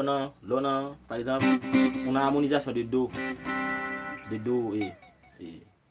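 An electric guitar plays chords.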